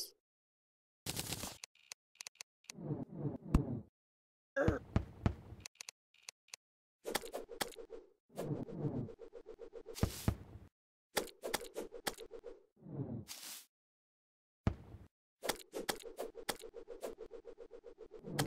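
A thrown boomerang whirs through the air again and again.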